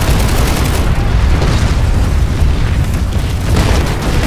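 A heavy aircraft engine rumbles low overhead.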